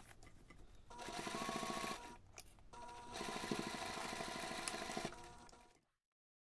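A sewing machine hums and stitches steadily.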